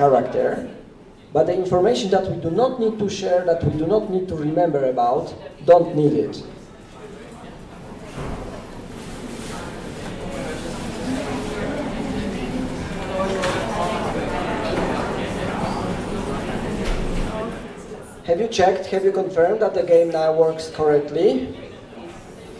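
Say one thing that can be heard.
A man speaks through a microphone in a hall, explaining with animation.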